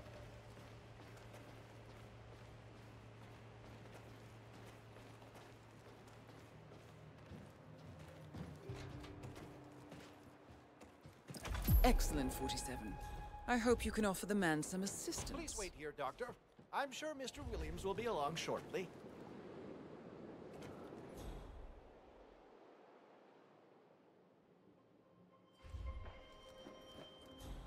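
Footsteps climb stairs and walk on a hard floor.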